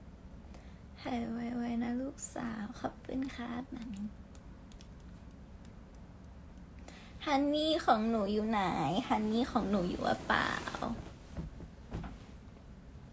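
A young woman talks softly and casually close to a phone microphone.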